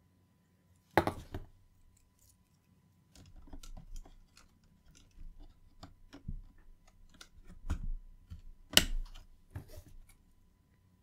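Cables rustle and tap as they are handled.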